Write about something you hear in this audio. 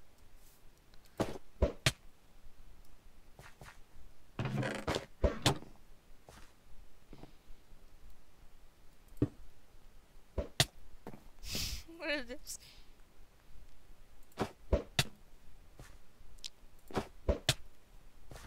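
Snowballs are thrown with quick soft whooshes.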